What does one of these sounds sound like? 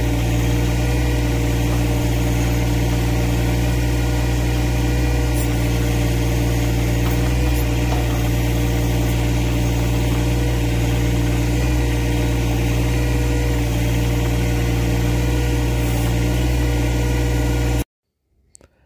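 A tractor engine runs with a steady low rumble close by.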